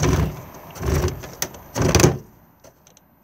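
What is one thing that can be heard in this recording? A plastic knob clicks as it is turned.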